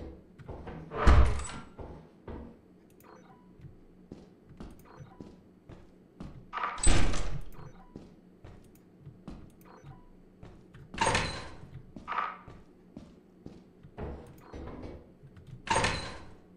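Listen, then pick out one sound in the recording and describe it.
A heavy metal door bangs open.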